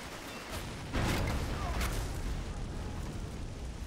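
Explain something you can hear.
A large explosion booms and rumbles away.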